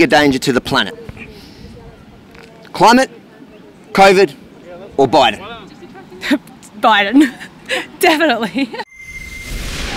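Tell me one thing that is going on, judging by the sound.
A man asks questions into a microphone outdoors.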